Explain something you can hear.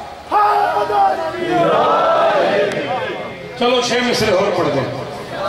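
A man recites in a loud, wailing chant through a microphone and loudspeakers.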